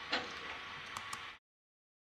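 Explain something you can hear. A small metal cap clicks against a valve.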